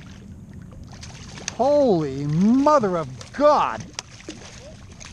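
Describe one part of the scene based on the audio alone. A fish splashes and thrashes at the water's surface.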